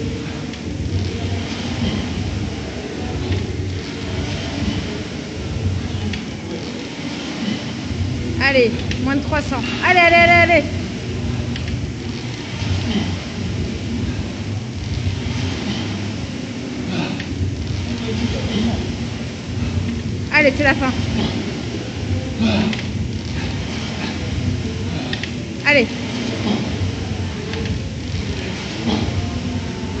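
A rowing machine's flywheel whirs and surges with each stroke.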